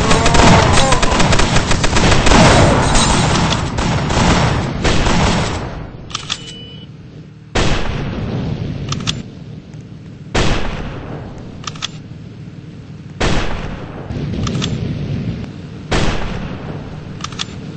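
A flamethrower roars in a game.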